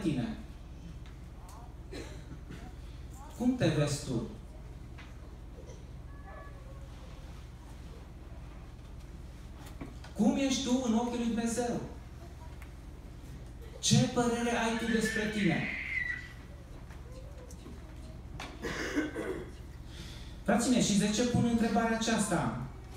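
A man speaks slowly into a microphone, in short phrases with pauses, in a room with some echo.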